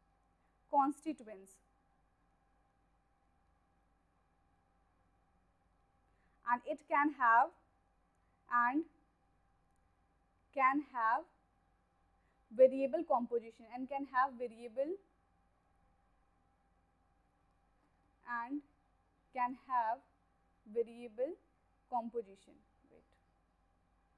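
A woman speaks calmly into a close microphone, in short phrases with pauses.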